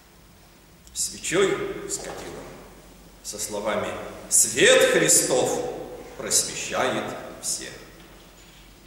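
An elderly man speaks calmly and solemnly, close by.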